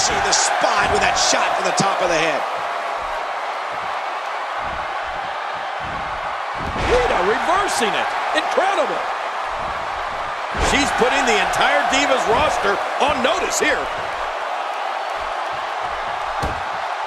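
Bodies thud onto a wrestling mat.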